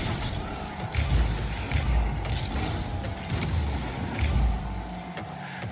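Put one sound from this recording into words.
A video game car's rocket boost roars in bursts.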